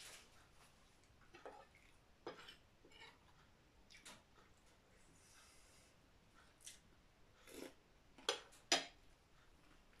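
A spoon and fork clink against a plate.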